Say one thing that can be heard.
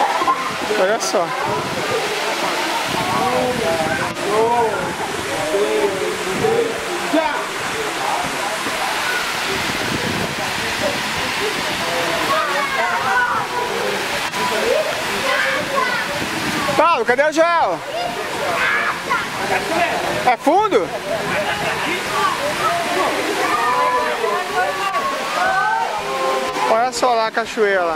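People shout and chatter in a crowd outdoors, with some echo.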